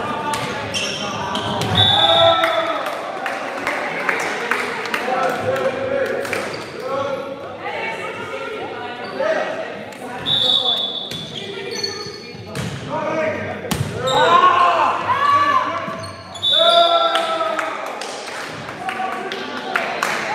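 Sneakers squeak sharply on a gym floor, echoing in a large hall.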